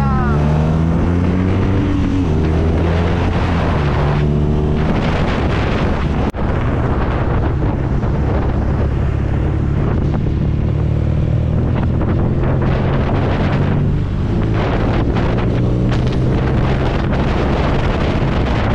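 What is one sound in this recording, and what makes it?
A motorcycle engine roars steadily, its pitch rising and falling as it shifts gears.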